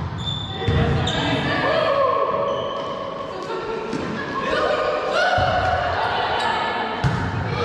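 Sneakers squeak on the hard court floor.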